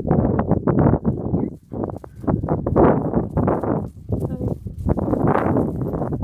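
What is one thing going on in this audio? A horse's hooves thud on dry ground as it trots closer.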